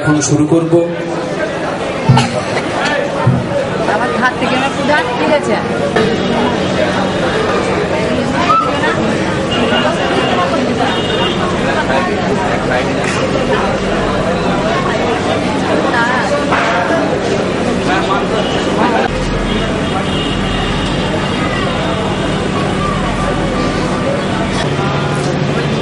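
A middle-aged man speaks with animation into a microphone over loudspeakers.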